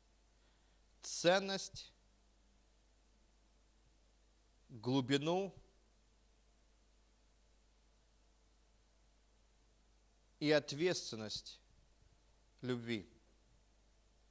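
A middle-aged man speaks slowly into a microphone in short phrases with long pauses.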